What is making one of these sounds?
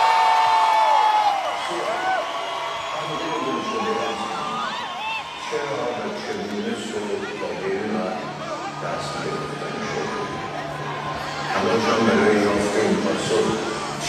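A live band plays music in a large echoing hall.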